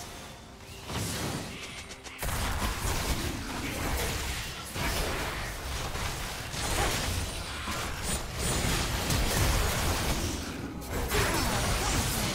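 Spell effects whoosh and crackle as game characters fight.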